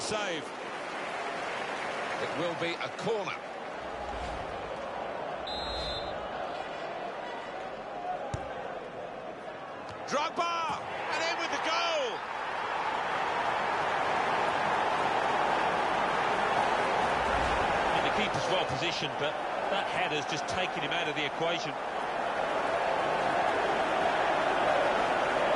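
A stadium crowd roars steadily and swells louder.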